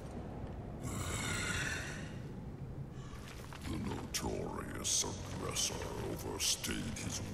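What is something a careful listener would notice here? Electricity crackles and sizzles over a huge stone creature.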